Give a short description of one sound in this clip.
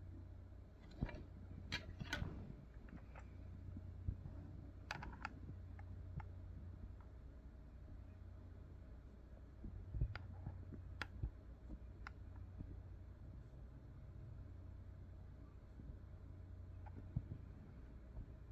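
Plastic cassette cases click and clatter as they are handled.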